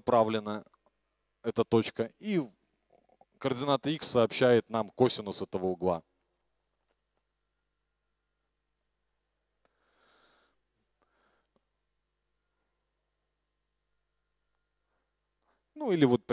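A man speaks into a microphone in a lecture, in short bursts with pauses.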